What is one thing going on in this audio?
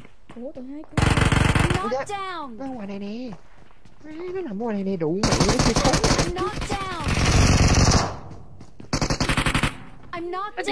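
Guns fire in rapid bursts in a video game.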